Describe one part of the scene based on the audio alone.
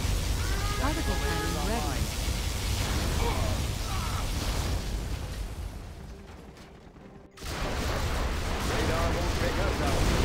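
Explosions crackle and boom.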